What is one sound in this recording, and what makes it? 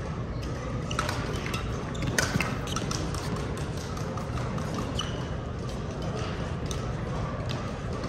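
Shuttlecocks are struck with rackets in quick, sharp taps.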